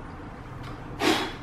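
A young child blows a short puff of air at candles.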